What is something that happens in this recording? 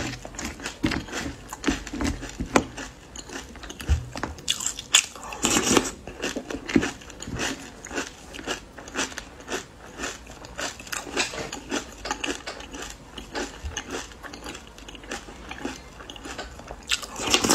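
A young woman chews food wetly and smacks her lips close to a microphone.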